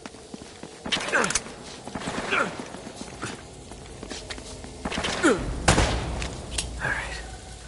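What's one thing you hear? Gunshots crack and echo.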